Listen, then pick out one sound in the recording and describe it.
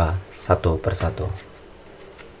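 Playing cards riffle and flutter as a deck is shuffled.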